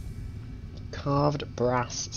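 A short chiming tone rings out.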